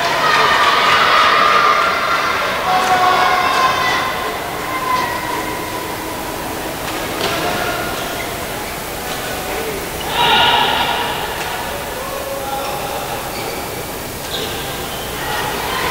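A shuttlecock is struck sharply with a racket, again and again.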